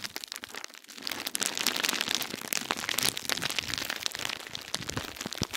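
Bubble wrap crinkles and rustles as fingers squeeze it.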